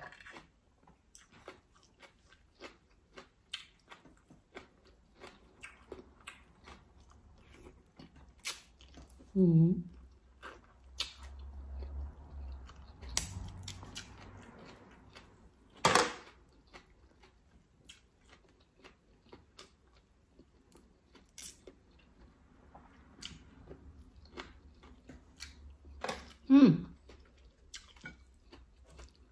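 A woman chews and slurps seafood close to a microphone.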